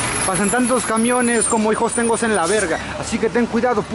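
A bus engine rumbles as it drives past nearby.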